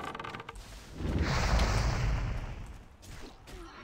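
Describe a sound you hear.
A fiery spell whooshes and bursts with a roar.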